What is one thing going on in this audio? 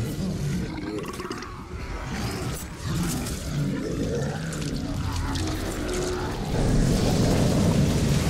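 Blows thud and crunch in a fight.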